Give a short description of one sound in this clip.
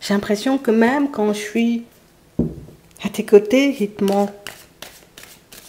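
Cards are shuffled with quick soft flicks.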